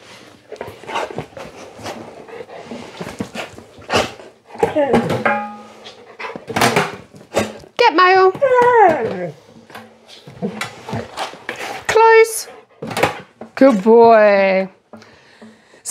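A woman talks to a dog in an excited, sing-song voice close by.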